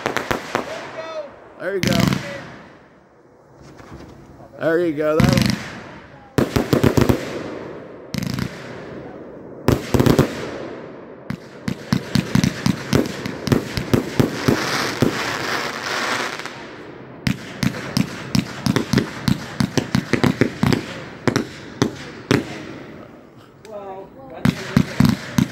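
Fireworks rockets whistle as they rise.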